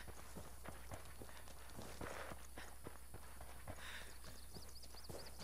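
Footsteps crunch on dry ground at a walking pace.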